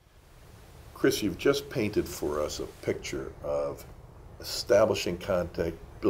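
An older man speaks calmly, close to a microphone.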